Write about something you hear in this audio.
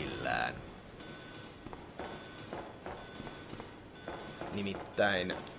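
Footsteps clang on a metal floor at a steady walking pace.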